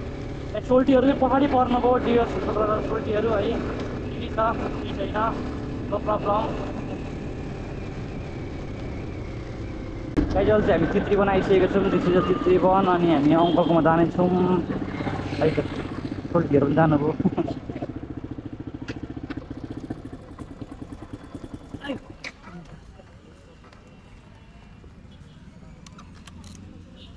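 A motorcycle engine hums steadily while riding, then slows and idles down.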